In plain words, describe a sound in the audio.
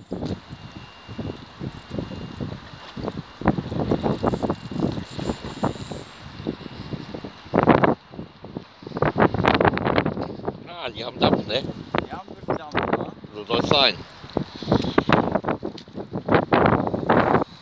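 A fishing reel whirs as the line is wound in.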